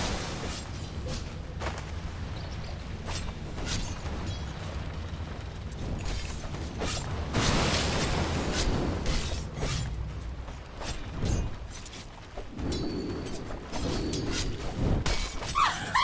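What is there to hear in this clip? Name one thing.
Game weapons strike with sharp hits.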